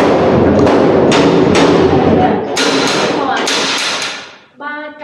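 A woman speaks with animation nearby, echoing in a narrow hallway.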